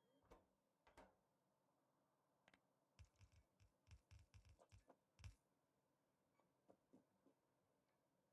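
Short dull thuds and clicks sound as machines are placed one after another.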